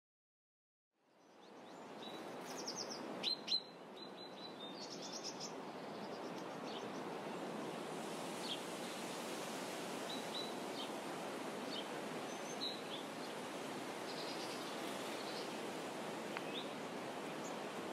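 Wind blows steadily through grass outdoors.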